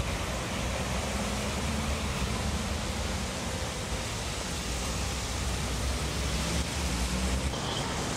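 Cars pass with tyres hissing on a wet road.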